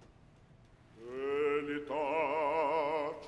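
A woman sings in a full operatic voice with strong vibrato, echoing in a large hall.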